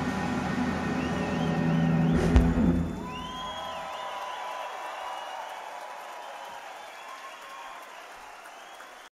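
An electric guitar plays a slow lead with bending notes.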